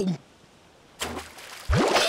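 Water splashes softly.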